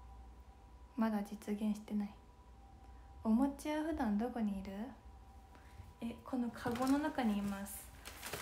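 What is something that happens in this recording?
A young woman speaks softly and close up, in short bursts with pauses.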